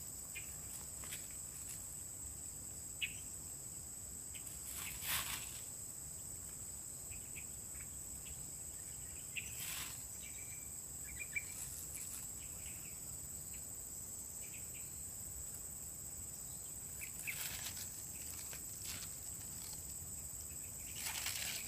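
Leaves rustle as a man picks from plants.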